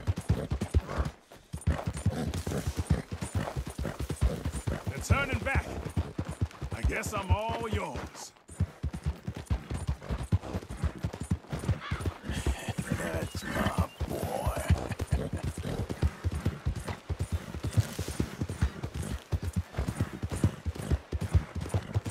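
A horse gallops with quick, heavy hoofbeats on a dirt trail.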